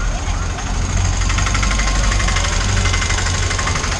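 An auto-rickshaw engine putters nearby.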